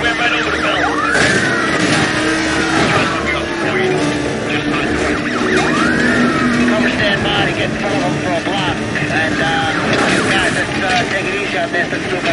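Car tyres screech while drifting through corners.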